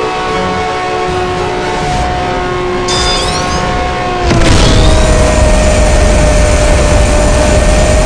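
A supercar engine roars at high speed.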